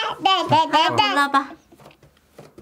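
A young child speaks in a high, sing-song voice close by.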